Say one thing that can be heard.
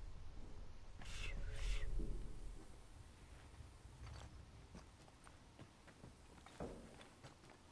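Heavy blows land with dull thuds and cracks.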